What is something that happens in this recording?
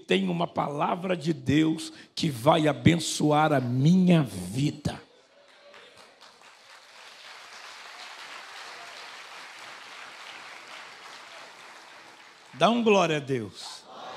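A man speaks with animation into a microphone, echoing through a large hall.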